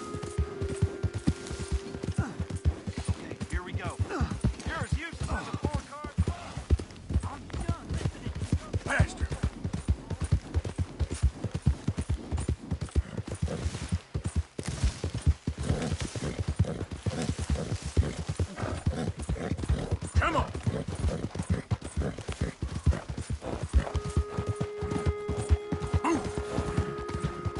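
A horse's hooves clop steadily on soft ground.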